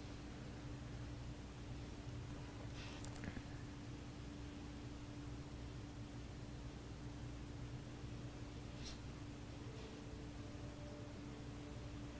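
A woman breathes slowly and softly while asleep, close by.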